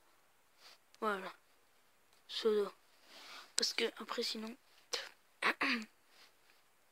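A boy speaks close to a microphone with animation.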